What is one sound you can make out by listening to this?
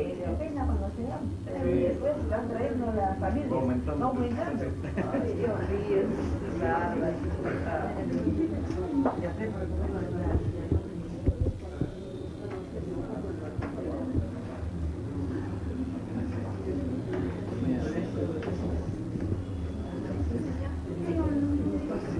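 A crowd of men and women chatters nearby in a room.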